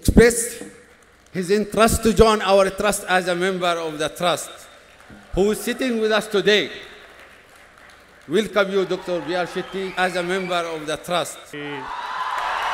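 A man speaks formally through a microphone and loudspeakers in a large hall.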